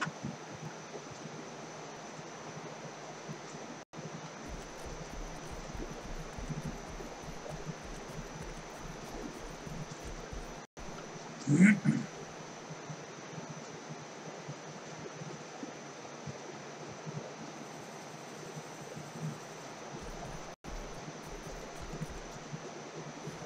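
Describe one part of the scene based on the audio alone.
Footsteps crunch on grass as a soldier walks.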